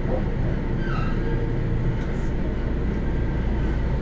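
A train door slides shut with a thud.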